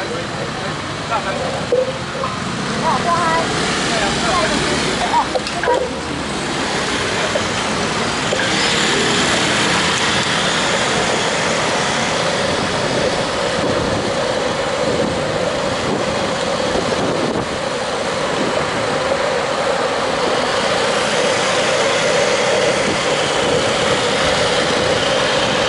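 Bicycle tyres whir on the road.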